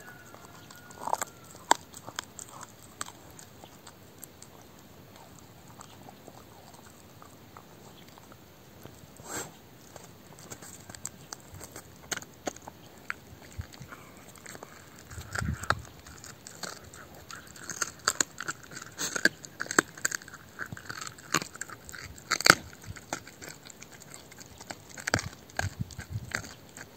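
A dog gnaws and crunches on a bone close by.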